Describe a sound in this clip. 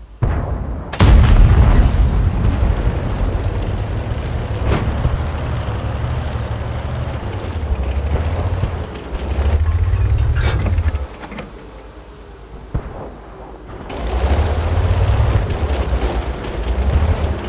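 A tank engine rumbles and roars, surging louder at times.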